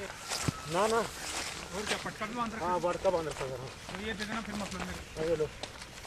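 Boots tread on dry grass and dirt.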